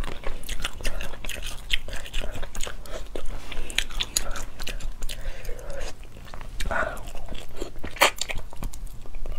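Meat tears and squelches in a young woman's fingers.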